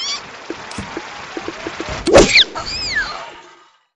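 A cartoonish splat sound effect bursts loudly.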